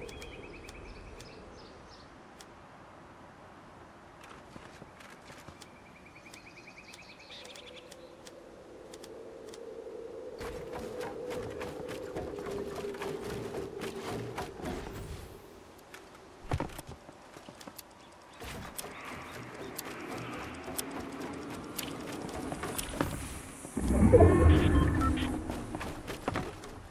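Wooden planks snap into place with quick, repeated clacks.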